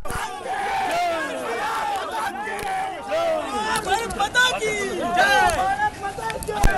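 A crowd of men shouts slogans loudly outdoors.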